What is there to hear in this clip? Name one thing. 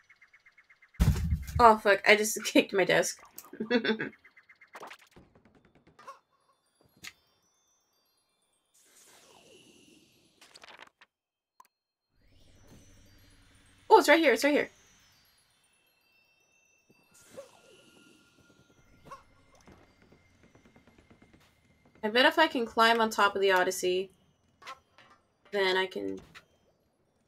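A young woman talks with animation into a microphone, in short bursts.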